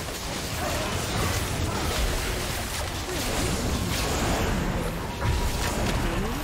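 Video game spell effects crackle and whoosh during a battle.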